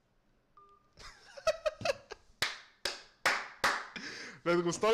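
A young man laughs out loud.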